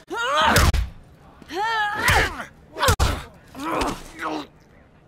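Heavy punches land with loud thuds.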